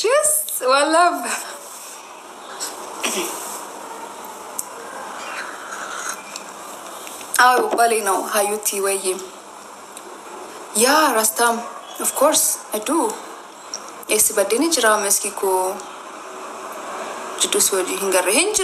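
A young woman talks calmly and close to a microphone, in short bursts with pauses.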